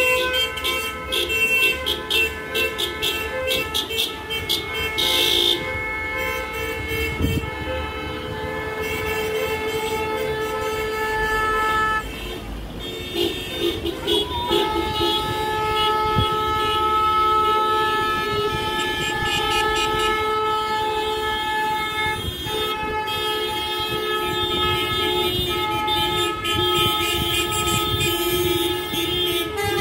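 Cars drive slowly along a street below.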